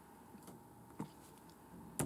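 Keys on a laptop keyboard click now and then.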